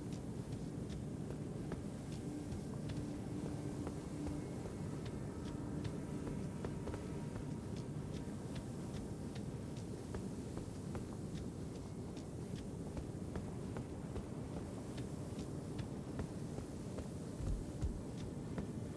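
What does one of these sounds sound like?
A low rumbling drone hums throughout.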